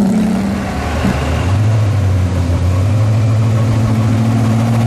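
A second sports car rumbles past close by.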